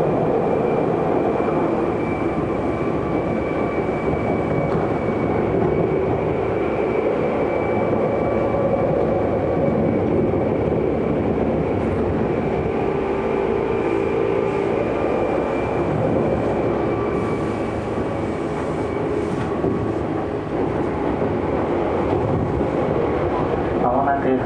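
Train wheels rumble and clatter on the rails, heard from inside the car.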